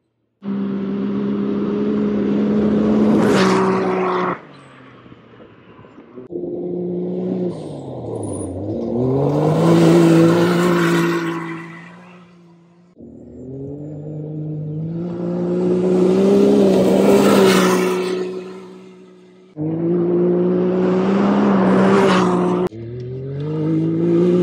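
An off-road vehicle engine roars loudly and revs up and down as it speeds past.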